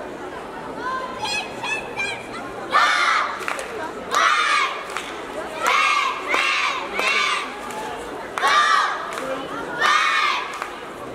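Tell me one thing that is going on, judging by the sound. A team of young women shouts cheer chants in unison in a large echoing hall.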